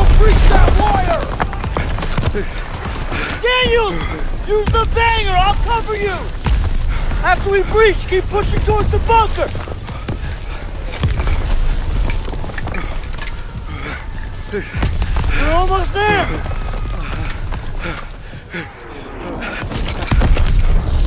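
Explosions and gunfire rumble and crack all around.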